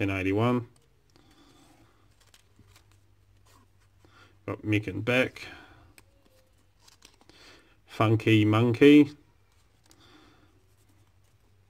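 Paper rustles and crinkles softly in someone's hands.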